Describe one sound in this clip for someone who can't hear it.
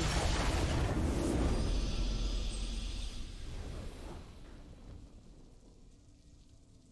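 A triumphant victory fanfare swells and fades away.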